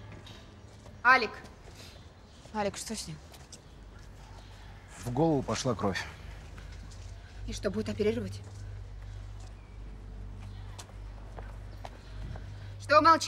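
A young woman speaks with urgency nearby.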